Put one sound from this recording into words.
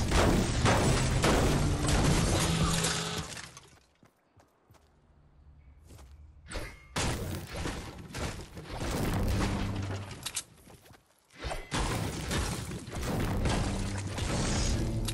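A pickaxe repeatedly strikes and smashes wood and metal.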